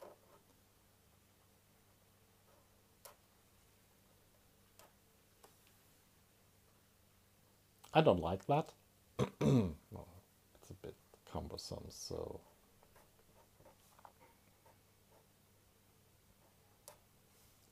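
A pen squeaks and scratches on paper.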